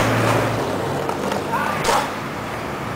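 Skateboard wheels roll over rough pavement.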